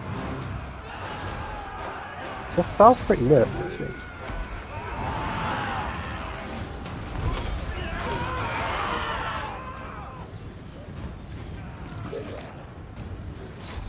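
Volleys of arrows whoosh through the air.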